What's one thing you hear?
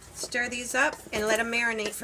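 A spatula scrapes and stirs food in a metal bowl.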